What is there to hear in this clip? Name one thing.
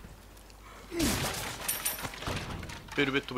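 A wooden barrel smashes and splinters.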